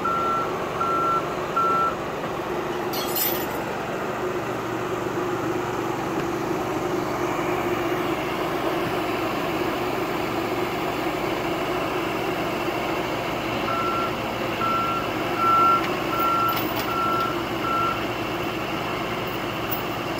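A diesel excavator engine rumbles steadily close by.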